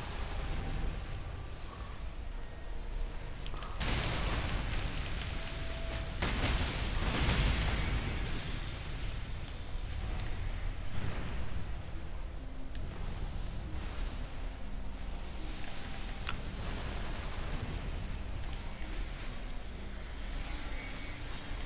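Magic blasts burst and whoosh in a game fight.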